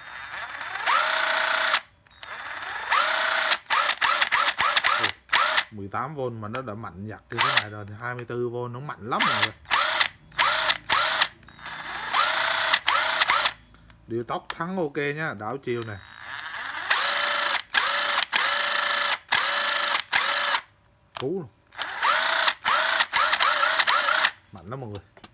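A power tool motor whirs in short bursts as its trigger is pulled and released.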